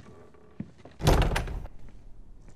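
A door thumps shut close by.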